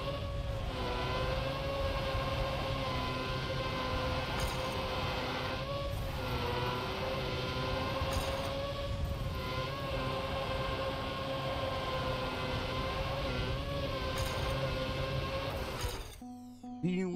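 A racing car engine hums at a steady high pitch.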